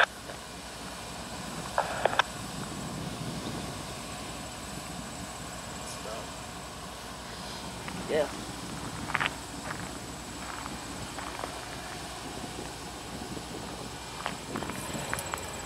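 A diesel locomotive rumbles steadily as it rolls past.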